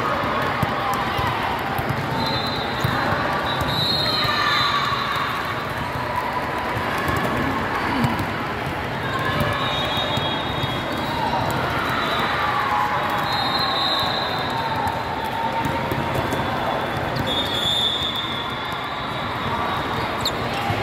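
A volleyball thumps off players' arms.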